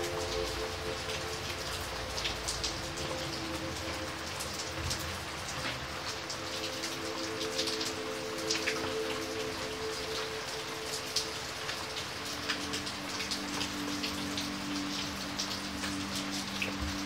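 Heavy rain patters and splashes steadily into puddles.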